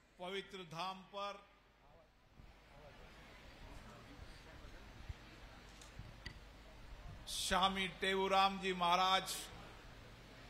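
A middle-aged man speaks loudly into a microphone over a loudspeaker, in short bursts with pauses.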